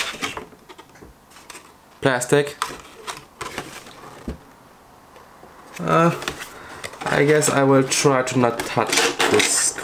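Plastic packaging crinkles in hands.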